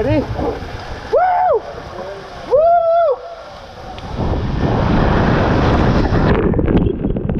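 Water rushes and splashes down a tube slide.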